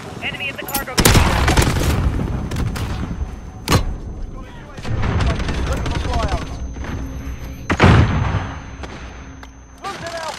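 A grenade explodes with a loud blast.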